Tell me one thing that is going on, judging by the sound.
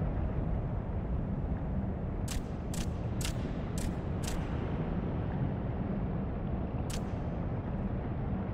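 Flames roar low and steady.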